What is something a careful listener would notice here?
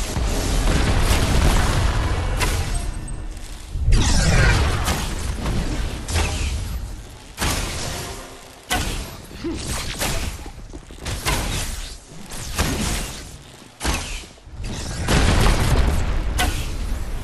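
Magic blasts and impacts crackle and boom in a game battle.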